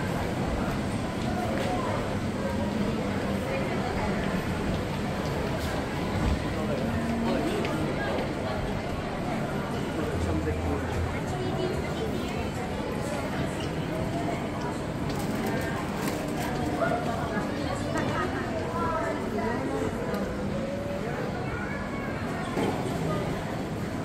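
A crowd of people chatters all around in a large echoing hall.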